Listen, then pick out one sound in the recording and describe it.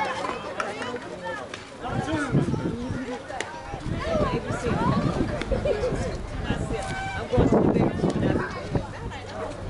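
Several men and women talk and call out across an open field outdoors.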